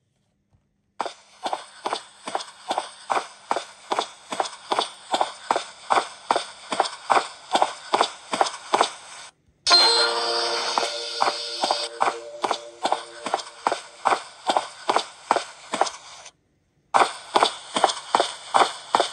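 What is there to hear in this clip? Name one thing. Footsteps tap steadily and quickly from a small device speaker.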